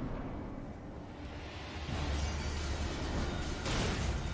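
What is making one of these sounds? A magic spell crackles and bursts in a game.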